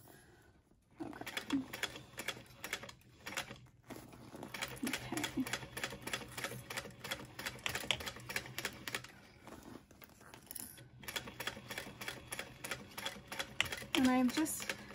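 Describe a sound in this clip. A sewing machine hums and stitches in quick rapid bursts.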